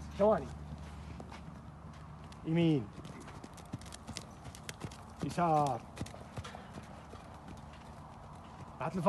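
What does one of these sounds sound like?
A horse neighs loudly in short, falling cries.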